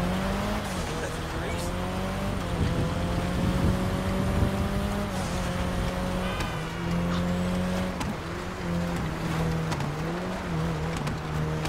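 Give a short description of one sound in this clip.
Tyres crunch over snow.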